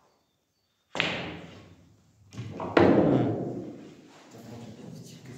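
A pool cue strikes a ball.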